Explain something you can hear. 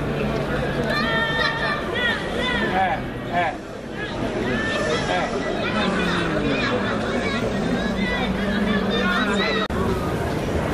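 A crowd chatters outdoors beside the water.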